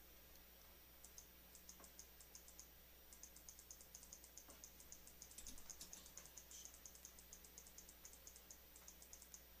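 Soft, quick clicks tick as items are shuffled around.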